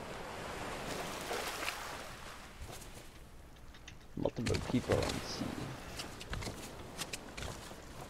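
Waves wash gently onto a shore.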